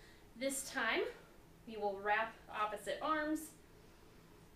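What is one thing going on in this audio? A young woman speaks calmly and clearly.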